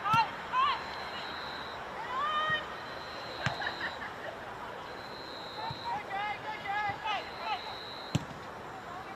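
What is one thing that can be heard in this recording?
A football thuds off a foot.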